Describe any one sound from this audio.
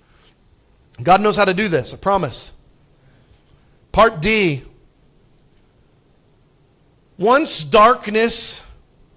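A man speaks calmly into a microphone, in short phrases with pauses, in a slightly echoing room.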